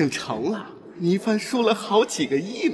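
A man speaks with animation and close by.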